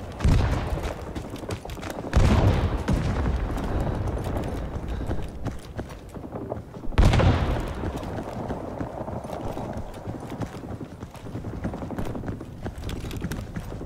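Footsteps thud quickly along the ground.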